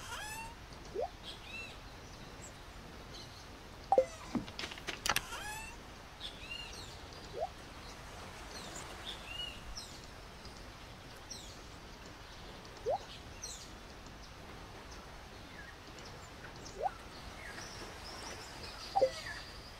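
Short electronic menu blips and pops sound now and then.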